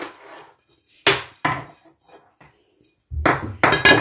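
A spoon scrapes food off a plate into a bowl.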